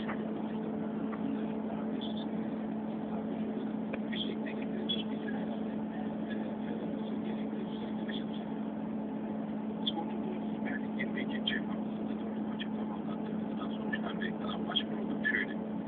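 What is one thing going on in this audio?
A vehicle's engine hums steadily from inside the cab.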